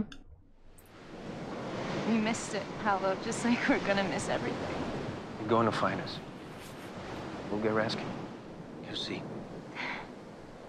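A woman speaks urgently in a film soundtrack.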